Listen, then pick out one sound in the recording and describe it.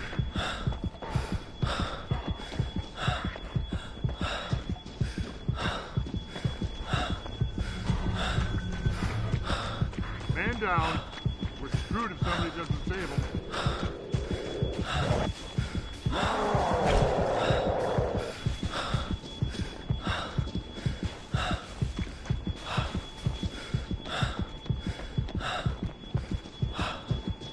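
Footsteps thud quickly and steadily on the ground.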